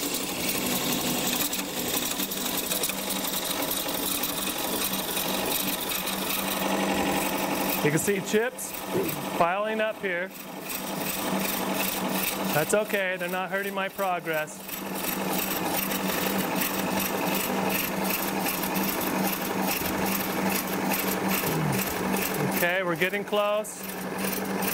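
A chisel shaves spinning wood with a harsh, rasping hiss.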